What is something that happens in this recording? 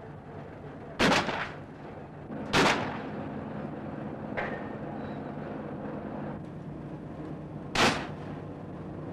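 Guns fire loud single shots that echo outdoors.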